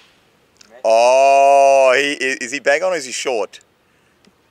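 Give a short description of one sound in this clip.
A young man shouts loudly outdoors.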